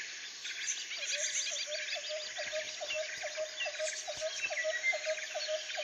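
A frog croaks in a quick, even rhythm.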